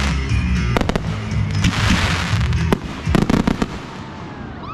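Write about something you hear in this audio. Fireworks crackle and fizz.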